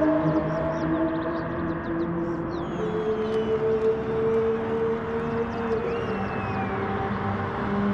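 Racing car engines roar steadily.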